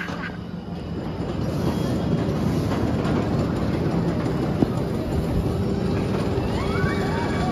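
A roller coaster train rumbles loudly along its steel track overhead.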